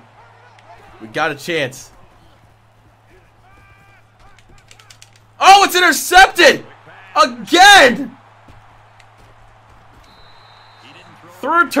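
A young man talks and exclaims excitedly into a close microphone.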